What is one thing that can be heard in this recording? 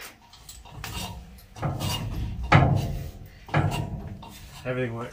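A metal ladder clatters as it is moved.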